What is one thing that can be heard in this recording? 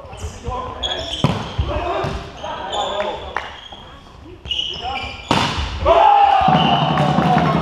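Young players call out and shout to each other.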